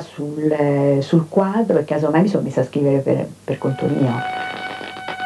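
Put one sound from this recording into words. A middle-aged woman speaks calmly, close to a microphone.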